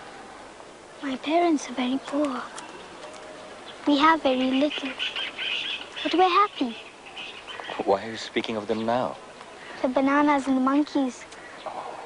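A young girl talks softly and close by.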